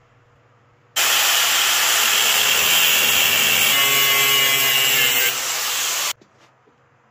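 An angle grinder screeches as it cuts metal.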